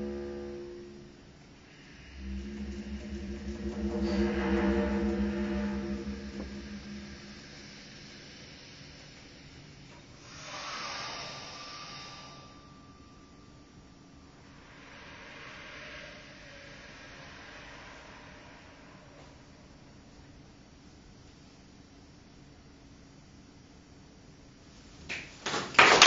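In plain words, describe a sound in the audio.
A bass clarinet plays soft, breathy, sustained low notes with long quiet pauses.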